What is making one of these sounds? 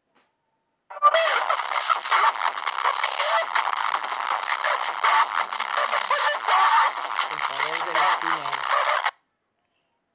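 A man screams loudly.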